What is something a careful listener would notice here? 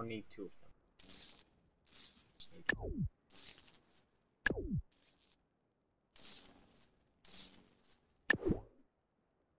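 Short game blips and pops sound as parts are placed.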